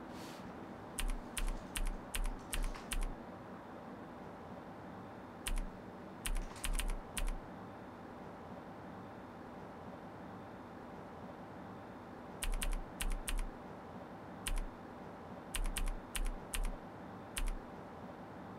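Keys clatter in short bursts of typing on a laptop keyboard.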